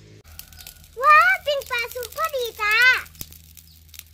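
A young girl speaks in a high, lively voice close by.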